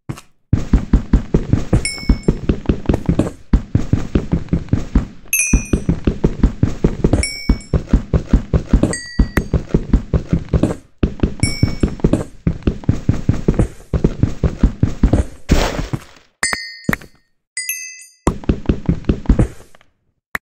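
A pickaxe chips at stone in fast, steady knocks.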